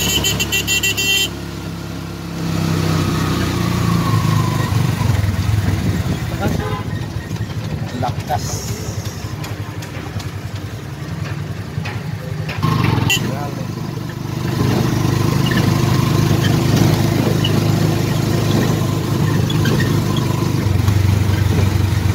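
A small motor rickshaw engine putters steadily from inside the cab.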